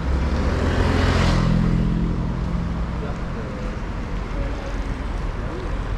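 People's footsteps pass on pavement nearby.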